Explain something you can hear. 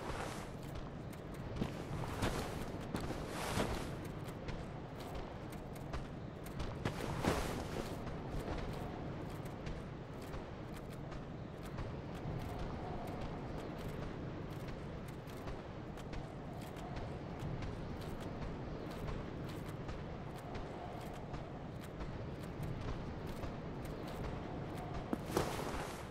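Metal armor clanks with heavy footsteps on stone.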